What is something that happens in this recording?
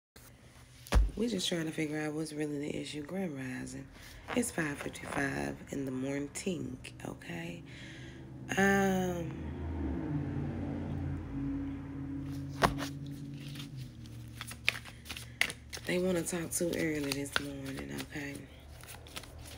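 A woman talks expressively and close up, with pauses.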